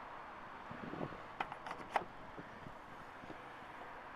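A car's tailgate latch clicks and the tailgate opens with a clunk.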